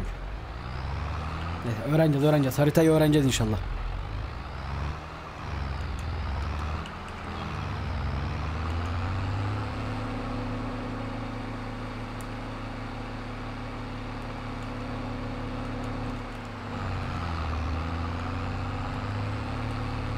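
A tractor engine runs with a steady low rumble.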